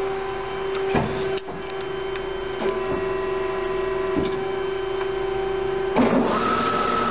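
A metal cutting machine clunks as it shifts.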